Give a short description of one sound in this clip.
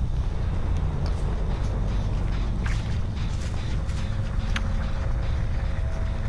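Dry corn stalks rustle as something pushes through them.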